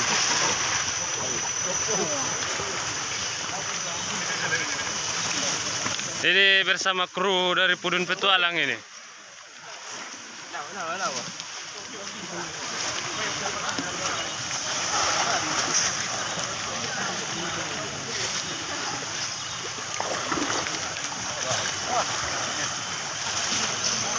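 Water splashes and sloshes.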